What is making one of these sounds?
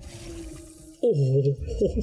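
Flesh tears with a wet, bloody splatter.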